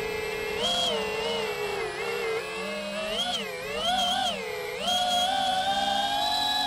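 Drone propellers whine steadily close by, rising and falling in pitch.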